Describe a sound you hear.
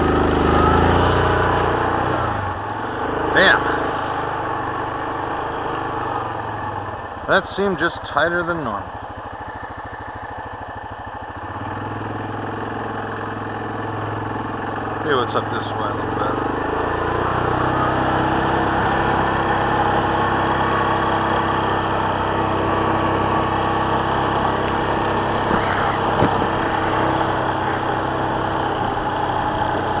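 A quad bike engine hums and revs steadily.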